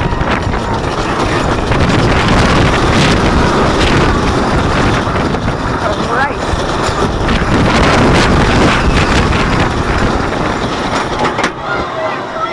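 A roller coaster train roars and rattles along its track at speed.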